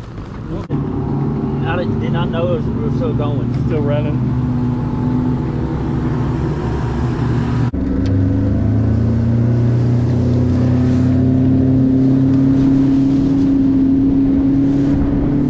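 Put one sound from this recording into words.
Water rushes and splashes against a moving boat's hull.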